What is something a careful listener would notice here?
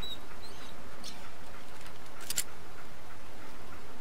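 A pistol is drawn with a short metallic click.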